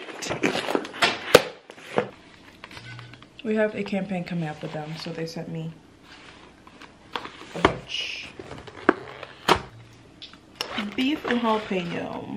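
Paper packaging rustles and tears.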